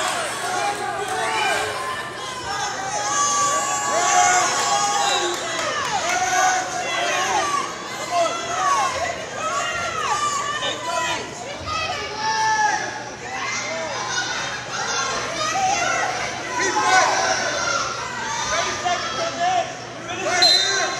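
A crowd of spectators shouts and cheers throughout a large echoing gym.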